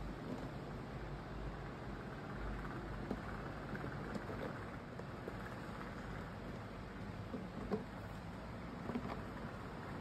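A plastic bottle crinkles and taps.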